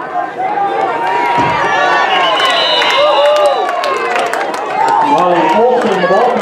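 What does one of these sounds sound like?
A crowd cheers loudly as a play unfolds.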